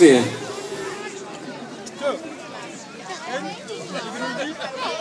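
Adults and children chat casually nearby outdoors.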